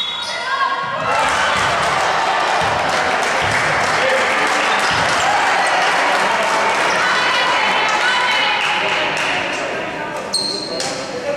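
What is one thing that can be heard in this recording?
A crowd of spectators murmurs and cheers in an echoing hall.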